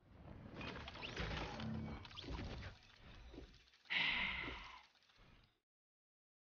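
Electronic game sound effects whoosh and chime.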